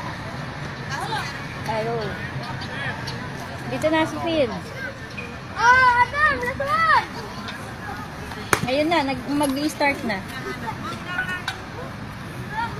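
Children and adults shout and cheer outdoors, some distance away.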